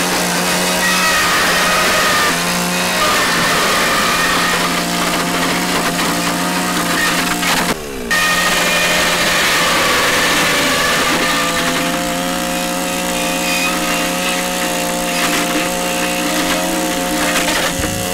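A chainsaw engine whines loudly and steadily.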